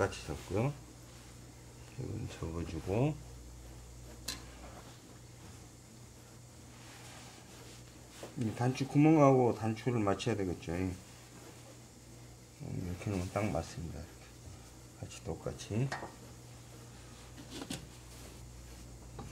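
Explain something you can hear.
Hands smooth and rustle heavy fabric.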